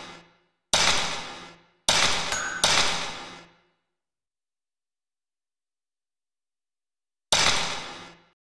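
Loud ringing game menu chimes sound in short bursts and fade away.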